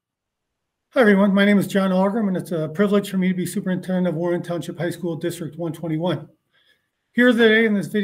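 A middle-aged man speaks calmly and clearly into a microphone, as if over an online call.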